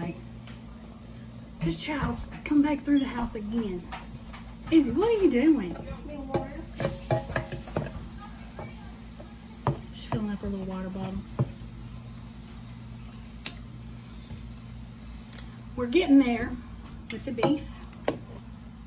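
A utensil scrapes and clinks against a pan.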